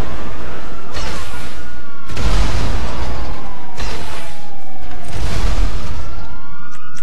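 Explosions boom and echo in a tunnel.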